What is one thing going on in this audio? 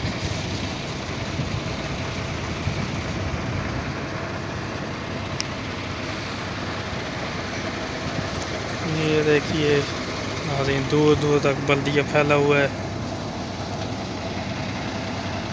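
A truck engine idles nearby.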